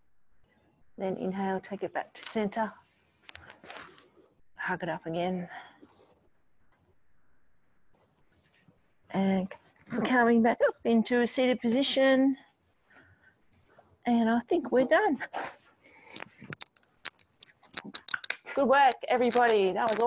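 A woman talks calmly and clearly into a microphone.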